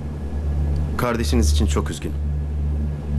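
A young man speaks in a low, calm voice, close by.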